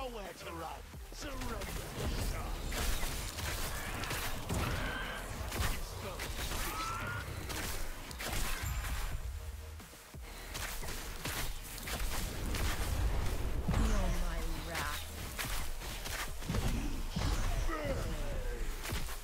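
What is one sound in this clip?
Creatures shriek and growl as they are struck down.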